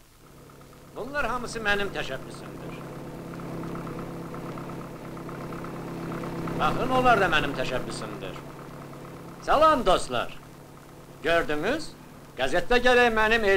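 A man calls out loudly outdoors over the engine.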